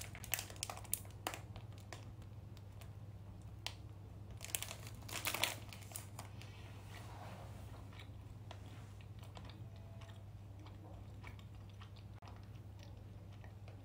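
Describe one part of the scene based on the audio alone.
A young woman bites into a soft pastry and chews.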